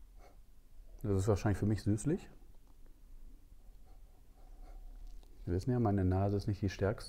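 A man speaks calmly up close.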